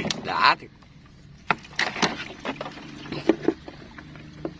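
A wire trap rattles and clinks against a boat.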